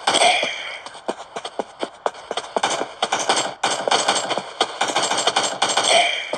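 Rapid gunfire cracks from a video game rifle.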